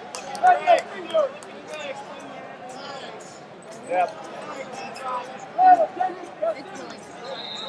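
Spectators shout encouragement loudly now and then.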